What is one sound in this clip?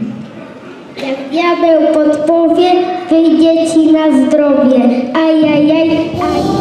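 A young boy sings into a microphone, heard through loudspeakers in an echoing hall.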